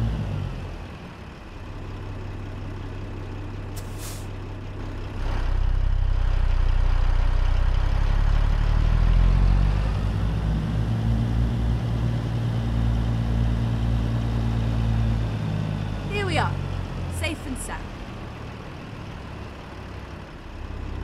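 A truck's diesel engine idles with a deep, steady rumble.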